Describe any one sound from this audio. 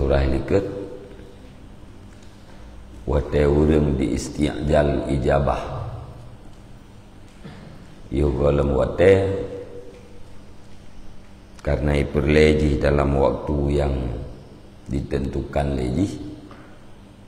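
A middle-aged man chants in phrases into a close microphone, pausing between them.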